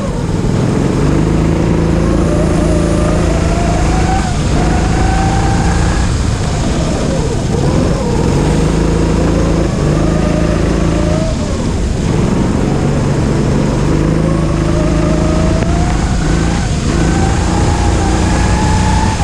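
Tyres hiss and spray on a wet track.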